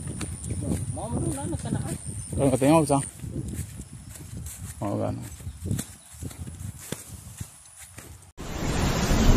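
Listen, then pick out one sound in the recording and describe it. Footsteps rustle through grass and dry leaves.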